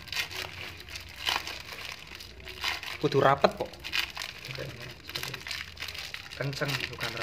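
Plastic crinkles and rustles as hands twist a bag shut.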